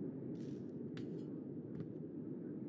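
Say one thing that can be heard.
Heels tap on a hard floor.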